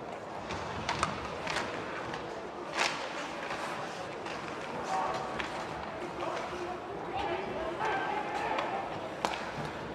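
Hockey sticks click against the puck.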